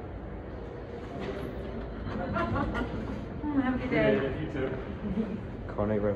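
Metal elevator doors slide open with a low rumble.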